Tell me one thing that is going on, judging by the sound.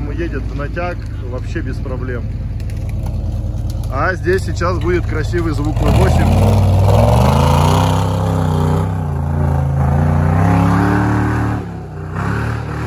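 An off-road vehicle's engine revs hard as it climbs.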